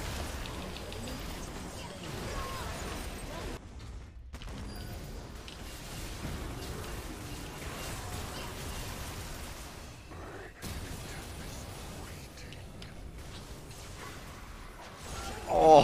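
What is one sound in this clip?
Game spell effects whoosh and clash.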